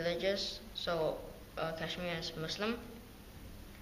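A young boy speaks quietly and hesitantly, close by.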